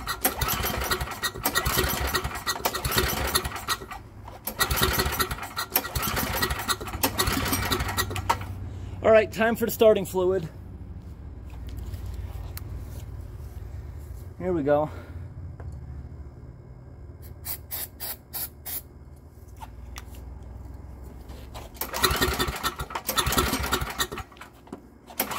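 A man yanks the pull cord of a small engine, which sputters and rattles briefly.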